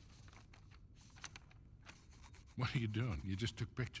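Paper rustles as it is pressed and folded.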